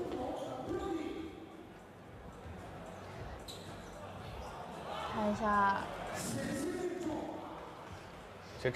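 A crowd murmurs in an echoing indoor hall.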